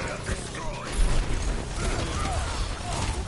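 Fire roars with a whoosh.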